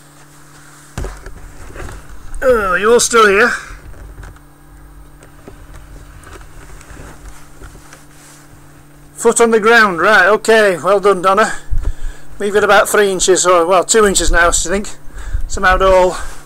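A hand bumps and rubs close against a microphone.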